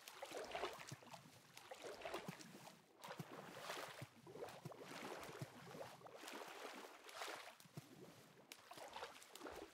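Water splashes softly as a swimmer paddles.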